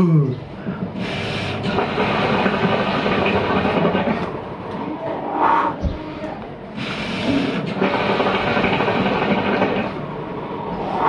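Water bubbles and gurgles loudly in a hookah as a man draws on it.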